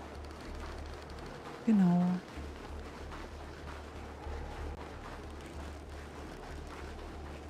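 A young woman speaks quietly close to a microphone.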